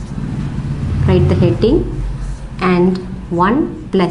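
A young woman speaks calmly and clearly, as if explaining a lesson.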